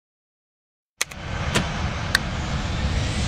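A switch clicks.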